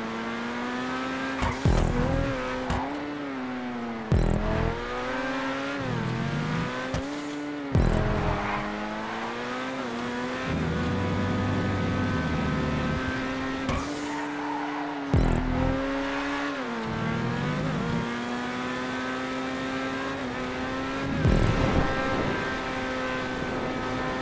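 A race car engine roars steadily, its pitch rising and falling as it revs and shifts gears.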